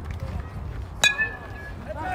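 A softball bat cracks against a ball.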